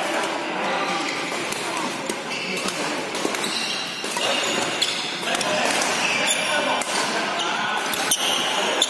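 A murmur of distant voices and play fills an echoing hall.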